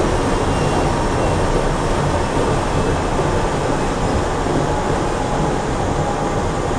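Train wheels clatter over the track.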